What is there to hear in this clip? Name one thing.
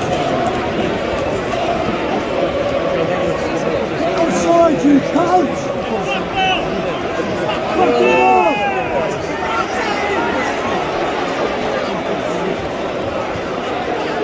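A large stadium crowd roars and chants steadily in the open air.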